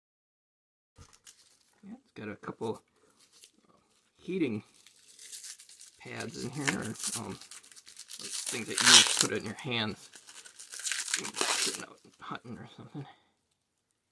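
A plastic bottle crinkles as it is handled.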